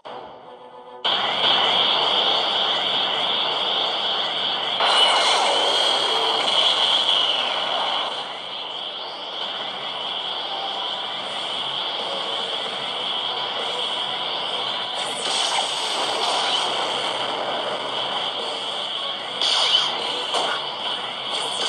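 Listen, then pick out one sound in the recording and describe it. Game music and fighting sound effects play steadily.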